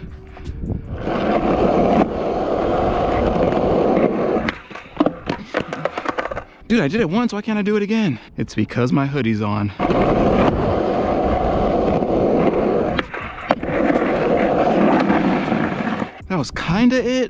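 Skateboard wheels roll over rough concrete.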